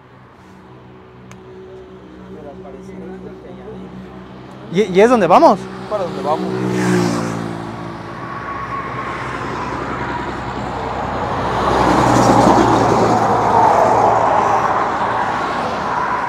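A large truck's engine rumbles closer and roars past nearby.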